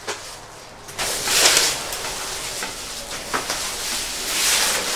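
Nylon tent fabric rustles as it is lifted.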